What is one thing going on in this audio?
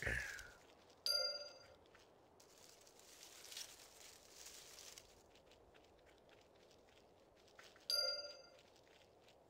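A short bright chime rings out.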